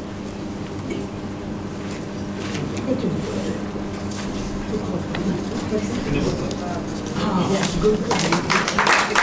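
Several men and women talk at once in a room with an echo.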